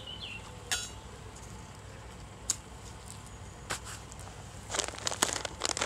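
A small wood fire crackles and pops.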